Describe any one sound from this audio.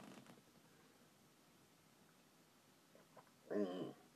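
A man sips a drink.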